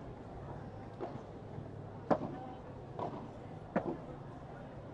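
Padel rackets strike a ball with sharp pops, back and forth.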